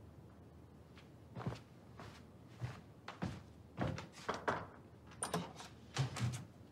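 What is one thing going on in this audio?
Footsteps tread across a floor.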